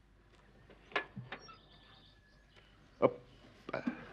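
A car door clicks shut.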